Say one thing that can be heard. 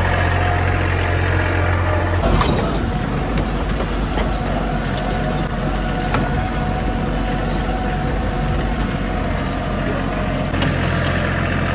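A tractor engine rumbles steadily.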